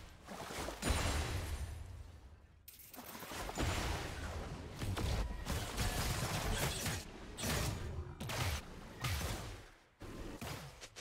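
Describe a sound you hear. Video game spell effects whoosh and crackle in bursts.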